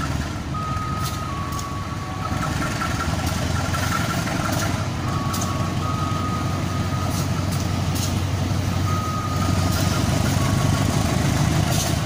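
Train wheels squeal faintly on the rails.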